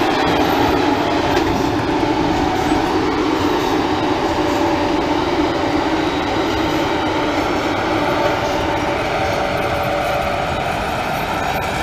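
An electric locomotive hums loudly as it pulls away close by.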